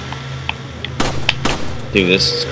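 A pistol fires sharp single shots.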